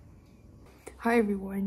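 A young woman speaks close by in a high, playful voice.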